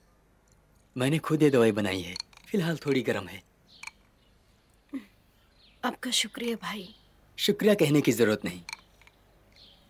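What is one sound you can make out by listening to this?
A young man speaks calmly and playfully nearby.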